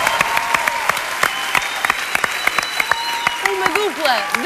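An audience claps steadily.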